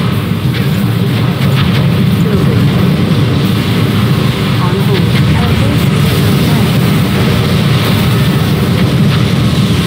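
Rockets whoosh as they fire.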